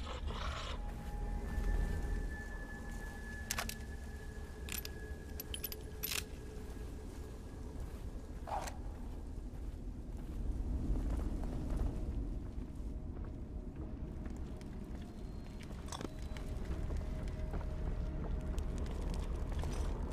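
Footsteps crunch over grass and rubble.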